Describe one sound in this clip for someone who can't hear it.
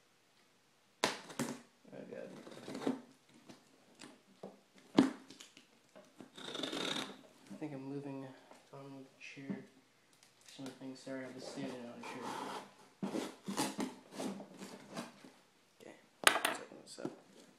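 A screwdriver clicks and scrapes against wood.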